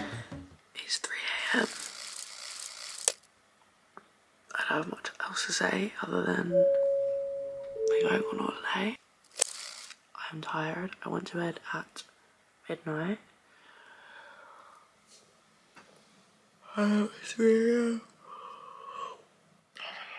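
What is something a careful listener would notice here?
A young woman talks tiredly and close up.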